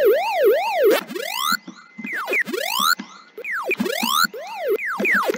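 Electronic arcade game tones sweep rapidly upward in a run of bright chirps.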